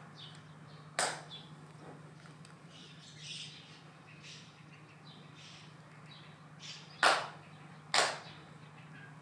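Hands clap sharply a few times.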